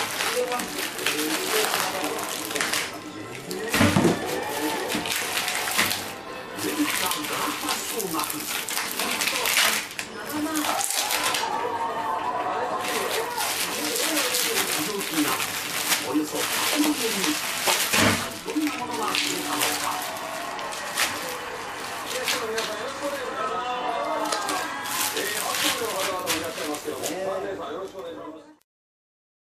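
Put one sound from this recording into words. Plastic wrap crinkles and rustles as hands handle it.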